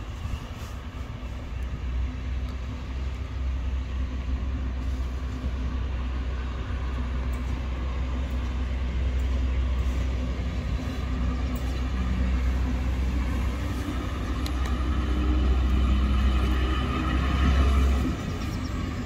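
A locomotive engine hums deeply.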